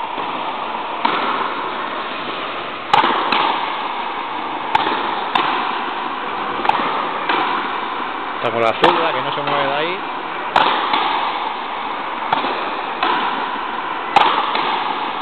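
A ball smacks hard against a wall and rackets, echoing loudly around a large hall.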